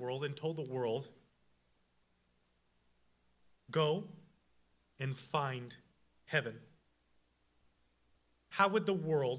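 A young man speaks into a microphone with animated pauses.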